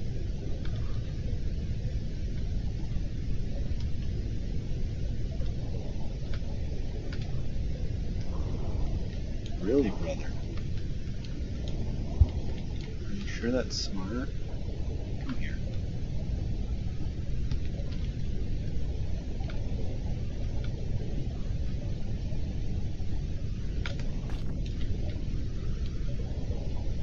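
Deep water rumbles steadily underwater.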